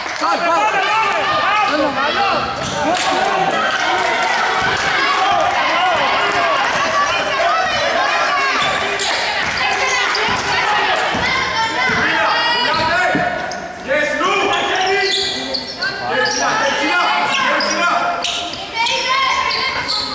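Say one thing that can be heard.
A crowd shouts and cheers throughout in a large echoing hall.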